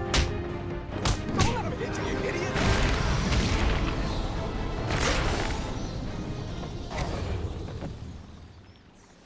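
Men grunt and groan as they are struck.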